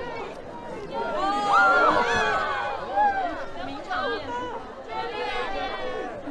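A crowd of people chatter and call out excitedly close by.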